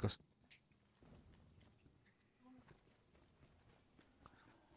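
Footsteps patter softly on the ground.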